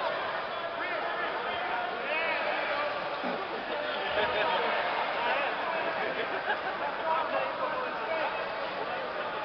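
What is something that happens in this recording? A crowd murmurs and shouts throughout a large echoing hall.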